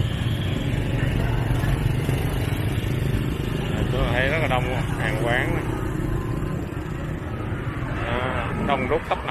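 Motorbike engines hum and buzz along a busy street.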